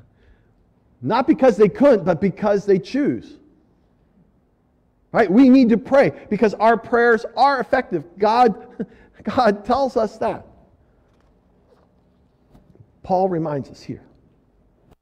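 An elderly man speaks with animation through a microphone in a room with some echo.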